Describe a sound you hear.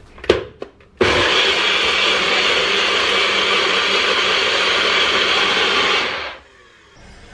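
A blender whirs loudly at high speed, crushing fruit into a smoothie.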